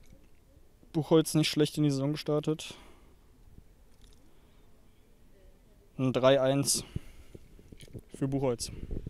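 A young man speaks into a microphone close by.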